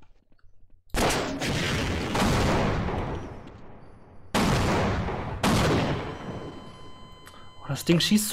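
Rocket explosions boom loudly and rumble away in a hard echo.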